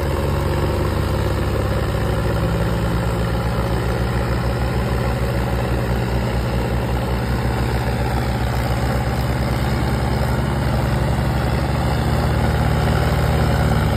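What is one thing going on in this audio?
Tractor tyres spin and grind on dry dirt.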